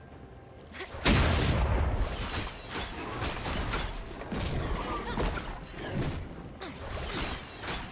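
Video game spell effects burst and crackle during a fight.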